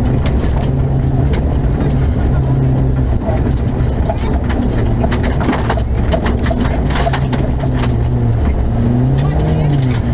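Gravel and stones clatter against the underside of a car.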